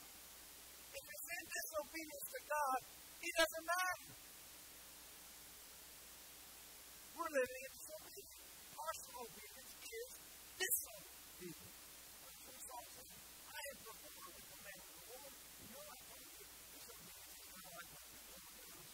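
A man preaches with animation through a microphone, his voice echoing in a large room.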